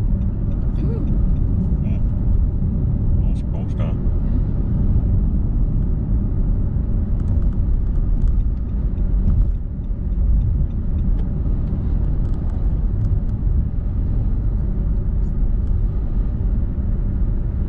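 A car engine hums steadily while tyres roll on the road, heard from inside the car.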